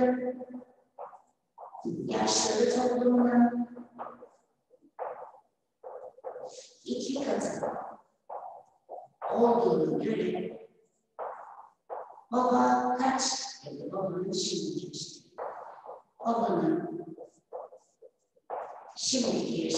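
A young woman speaks calmly and slowly, as if dictating, close by.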